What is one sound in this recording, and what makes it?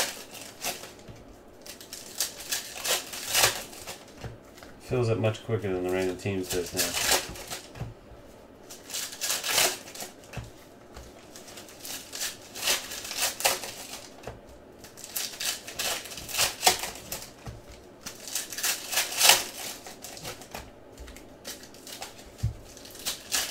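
Foil card wrappers crinkle and tear as hands open them.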